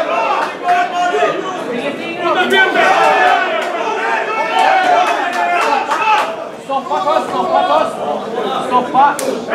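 A crowd of spectators shouts and cheers loudly nearby.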